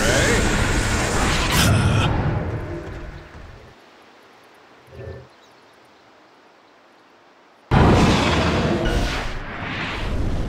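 Fantasy battle sound effects crash and crackle as magic spells hit.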